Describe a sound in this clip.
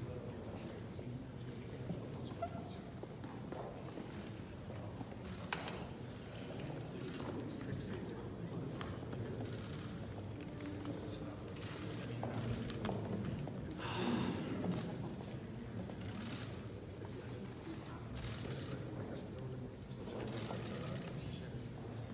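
A crowd of men and women murmur and chatter quietly in a large echoing hall.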